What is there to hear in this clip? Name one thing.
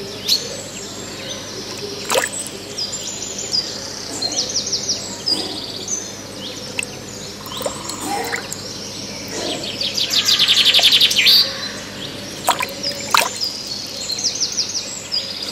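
Water splashes and mud squelches close by.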